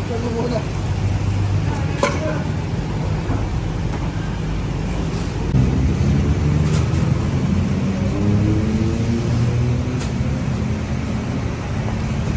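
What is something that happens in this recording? Cardboard boxes thump as they are set down.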